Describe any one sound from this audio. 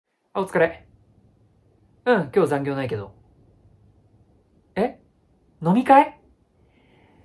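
A young man speaks to a microphone nearby with animation.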